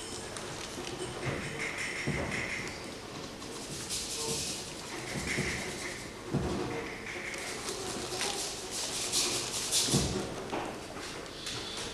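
A man speaks theatrically, heard from a distance in a hall.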